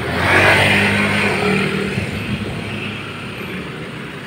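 A motorbike engine hums close by, then fades as it rides away.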